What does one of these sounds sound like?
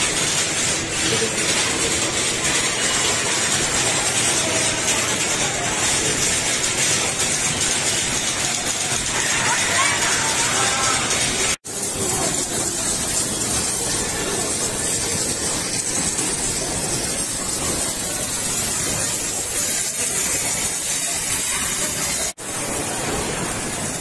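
Arcade machines play loud electronic music and jingles.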